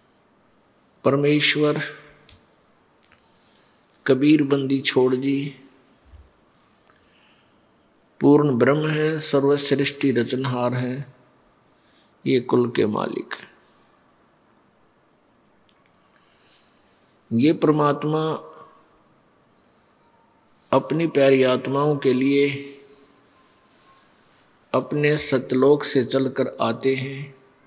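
An elderly man speaks calmly and slowly in short phrases with pauses, close to a microphone.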